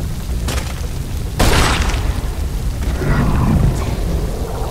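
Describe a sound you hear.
A young woman gasps and breathes heavily close by.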